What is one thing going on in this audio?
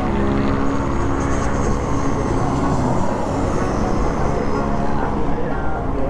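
A propeller plane drones overhead.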